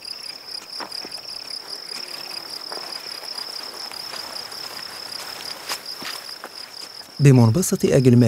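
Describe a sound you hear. Footsteps brush through grass.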